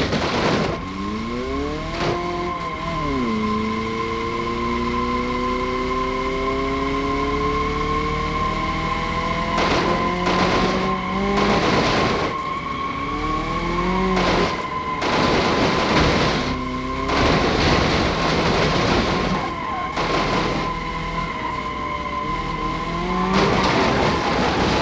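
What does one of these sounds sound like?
A car engine revs up and down through the gears.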